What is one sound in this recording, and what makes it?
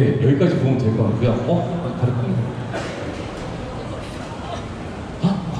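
A young man speaks into a microphone over loudspeakers, in a large echoing hall.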